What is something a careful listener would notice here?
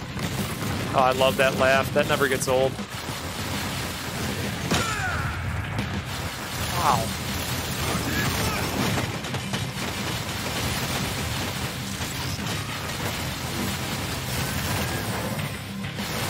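A low rumbling din of battle sounds throughout.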